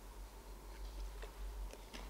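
A man drinks water.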